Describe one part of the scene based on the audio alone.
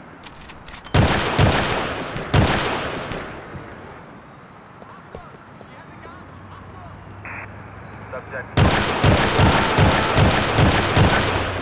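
Gunshots ring out in loud bursts that echo and fade.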